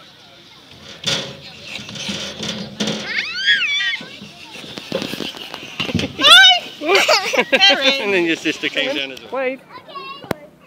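A toddler squeals and babbles with excitement.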